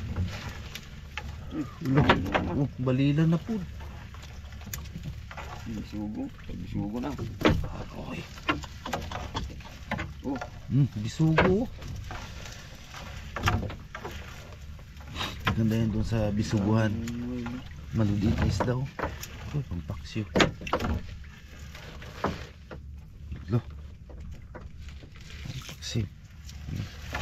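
A wet fishing net rustles and slaps as it is hauled into a boat.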